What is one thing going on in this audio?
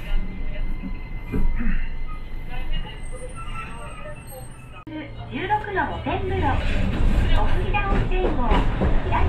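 A tram motor hums and rumbles steadily as the tram rolls along its rails.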